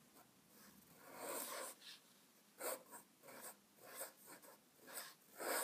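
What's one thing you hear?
A fountain pen nib scratches softly on paper.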